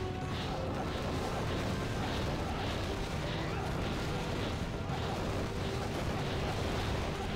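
Weapons clash and explosions burst over and over in a busy battle.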